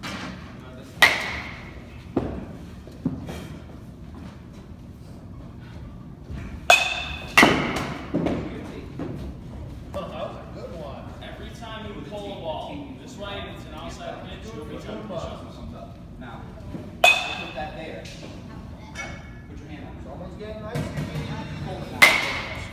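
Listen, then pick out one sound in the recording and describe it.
A bat cracks sharply against a ball, several times, in an echoing indoor hall.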